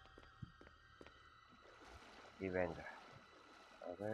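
Booted footsteps run across a concrete floor.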